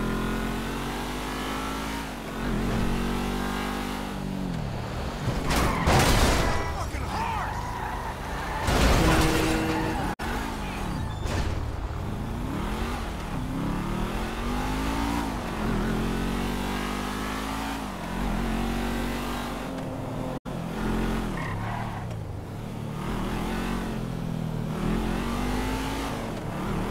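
A car engine revs, rising in pitch and dropping as it shifts gears.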